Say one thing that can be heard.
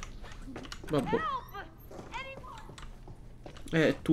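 A door swings open.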